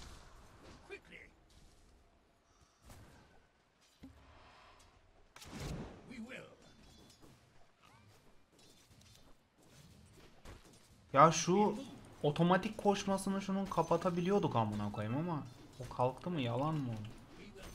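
Game spells and weapon blows clash in a fight.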